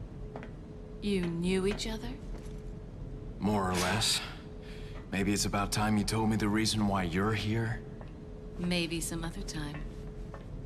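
A woman speaks calmly.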